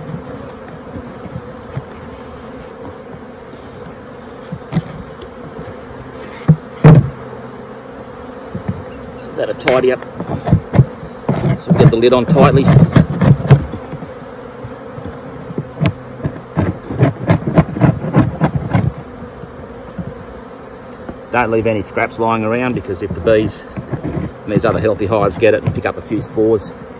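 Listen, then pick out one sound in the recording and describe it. Bees buzz steadily.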